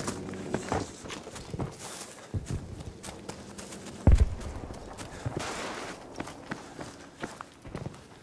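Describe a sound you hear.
Leafy plants rustle as someone pushes through them.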